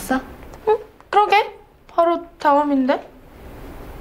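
A young woman speaks with rising, questioning tones close by.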